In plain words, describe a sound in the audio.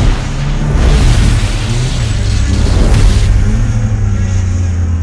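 Thunder cracks and rumbles with an electric crackle.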